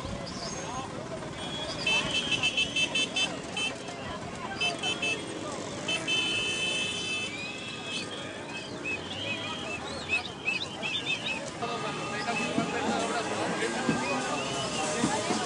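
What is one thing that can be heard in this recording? A crowd of men and women talk and call out nearby, outdoors.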